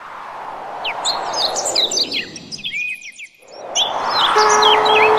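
A chick cheeps in rapid high chirps.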